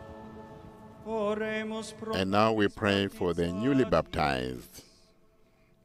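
A young man chants through a microphone.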